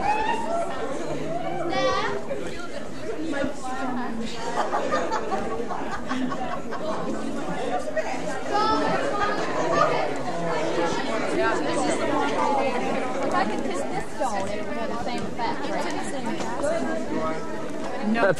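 A crowd of men and women chatters close by outdoors.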